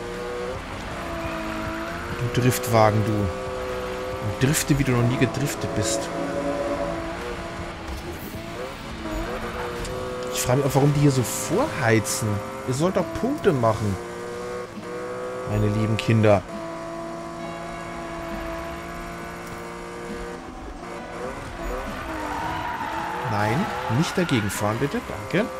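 A car engine roars and revs at high speed, rising and falling in pitch.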